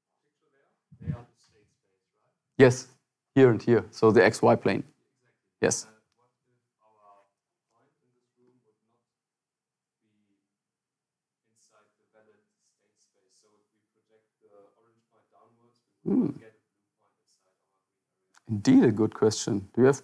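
A young man speaks calmly in an echoing room.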